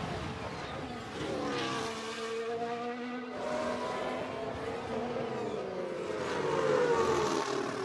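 A racing car whooshes past close by.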